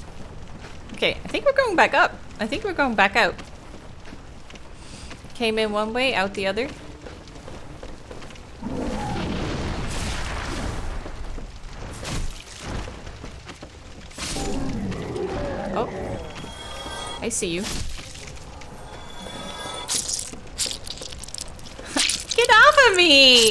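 A young woman talks with animation into a close microphone.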